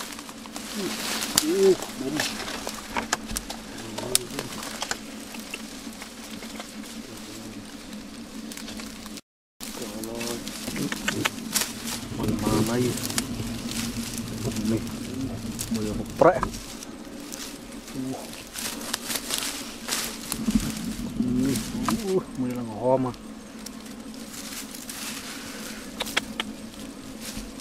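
A swarm of bees hums steadily nearby.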